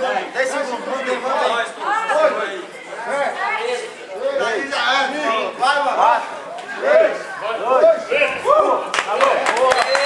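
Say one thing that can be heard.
Young men shout encouragement from the sidelines of a large echoing hall.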